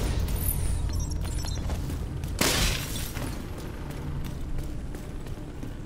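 Heavy footsteps thud across a hard floor.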